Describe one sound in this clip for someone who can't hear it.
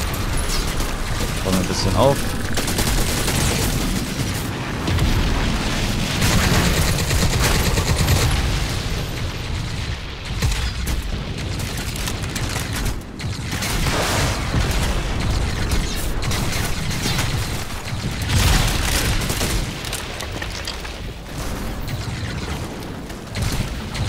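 Guns fire in loud bursts.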